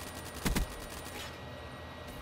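A gun fires a short burst of shots.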